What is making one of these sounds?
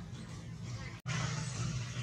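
A monkey chews food with soft smacking sounds.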